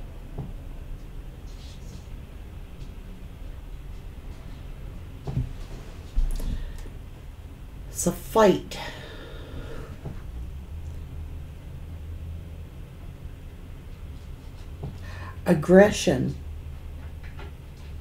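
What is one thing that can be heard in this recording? Cards shuffle softly in a woman's hands.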